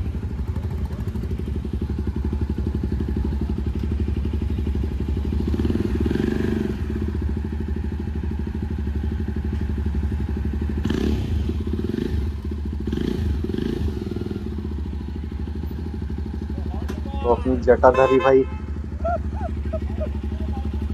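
A motorcycle engine idles close by with a low steady rumble.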